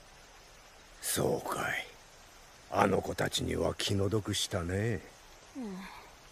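An elderly man speaks calmly and quietly.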